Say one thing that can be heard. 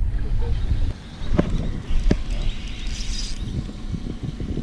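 A fishing reel whirs and clicks as its handle is turned.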